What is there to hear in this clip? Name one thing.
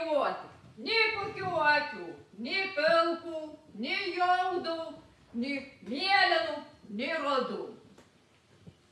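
A middle-aged woman speaks with feeling on a stage, in a slightly echoing room.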